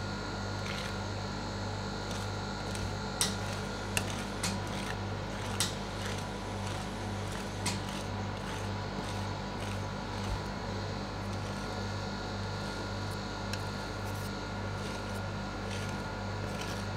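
A refrigeration machine hums steadily.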